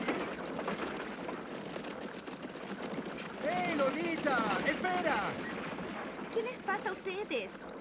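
Horse hooves clatter steadily on a road.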